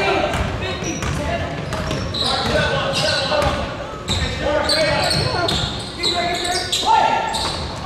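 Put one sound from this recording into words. A basketball bounces on a hardwood court.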